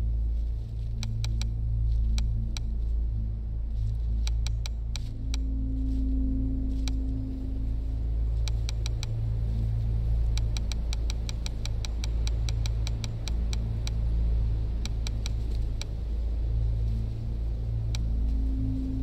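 Short soft clicks tick as menu selections change.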